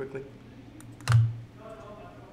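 A computer mouse clicks once.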